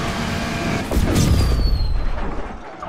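A car crashes with a loud metallic impact.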